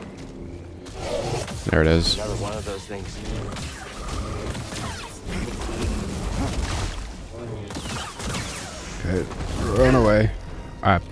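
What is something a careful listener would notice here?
A lightsaber hums and crackles as it swings.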